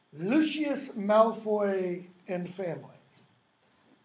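An older man speaks with animation close by, then pauses.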